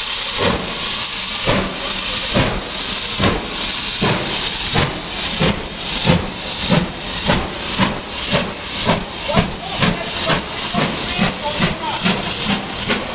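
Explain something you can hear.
A steam locomotive chuffs loudly, its exhaust beats quickening as it pulls away.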